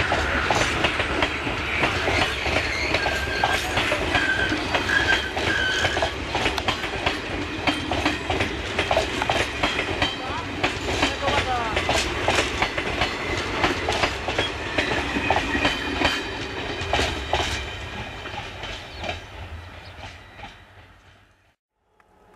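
A passenger train rolls past close by, its wheels clattering rhythmically over the rail joints, then fades into the distance.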